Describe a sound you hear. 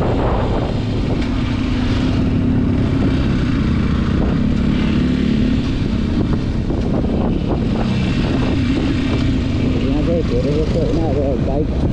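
A motorcycle engine hums steadily and revs up near the end.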